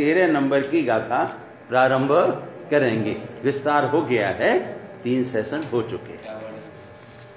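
An elderly man speaks with emphasis through a microphone and loudspeakers.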